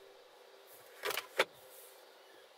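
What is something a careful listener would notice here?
A plastic latch clicks open.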